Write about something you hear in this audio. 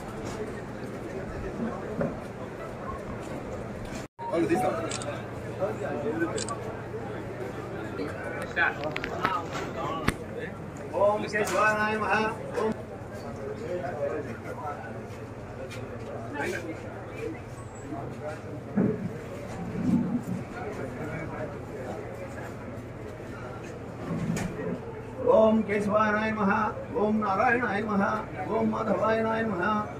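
A crowd of men murmurs and chatters nearby.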